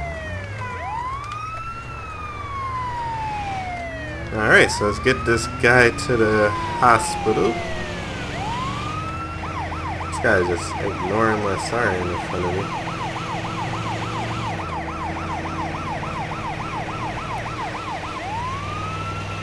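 An ambulance siren wails and yelps continuously.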